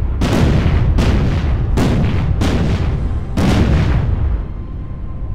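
Heavy naval guns fire in booming blasts that rumble away.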